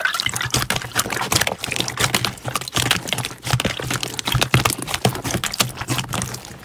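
Hands squish and squelch slime in water.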